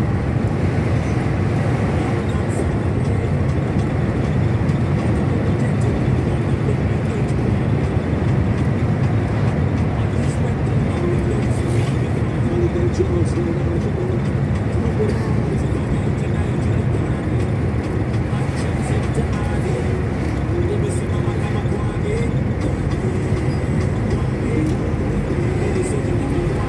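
A vehicle engine hums steadily from inside a moving car.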